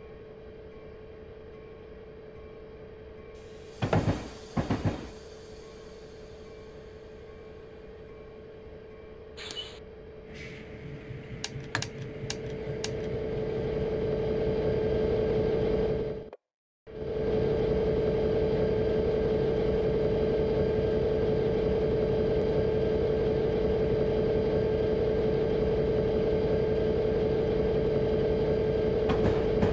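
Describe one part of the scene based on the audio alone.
A diesel locomotive engine hums steadily and grows louder as the train speeds up.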